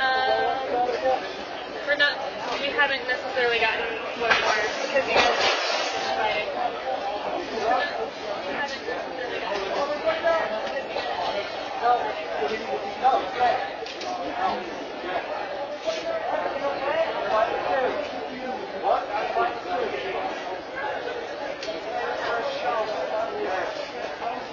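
A crowd of men and women chatter in a large echoing hall.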